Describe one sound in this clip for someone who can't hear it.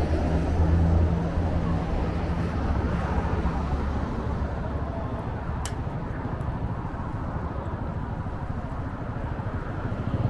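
Traffic hums steadily along a nearby city street.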